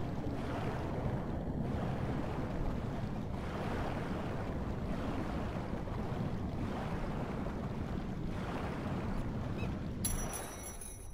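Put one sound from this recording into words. Water rumbles and gurgles, heard muffled from underwater.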